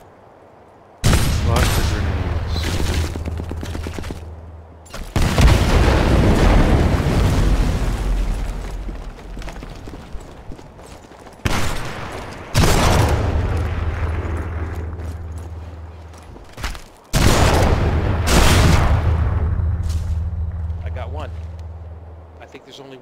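Heavy rifle shots boom one at a time, each rolling away in a long echo.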